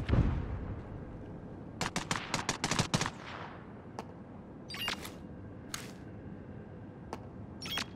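An electronic scanner gives short pings.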